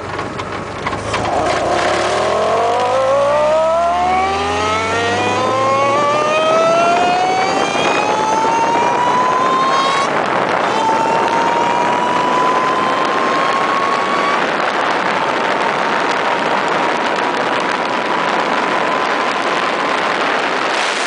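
An engine revs up, rising in pitch through the gears as a car speeds up.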